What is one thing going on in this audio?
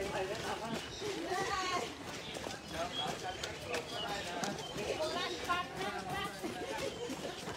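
Many running shoes patter on pavement.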